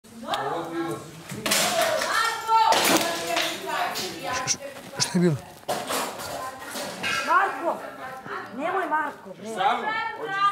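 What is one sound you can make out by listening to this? Several young men and women talk and call out with animation, heard through room microphones.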